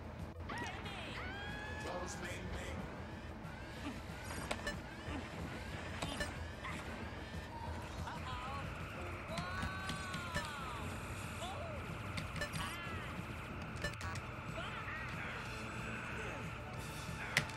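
Laser blasts zap and whine in quick bursts.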